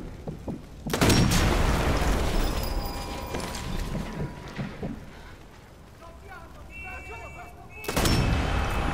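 A rifle fires a loud shot that booms and echoes.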